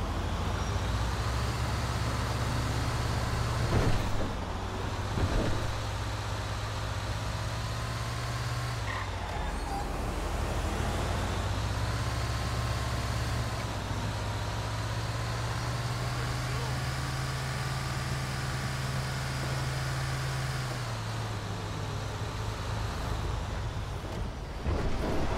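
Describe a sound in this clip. A bus engine hums steadily and rises and falls as the bus speeds up and slows down.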